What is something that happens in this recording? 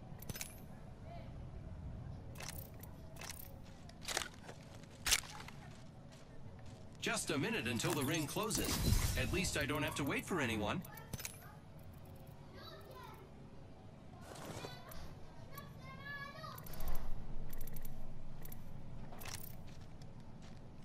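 Short interface clicks sound as items are picked up.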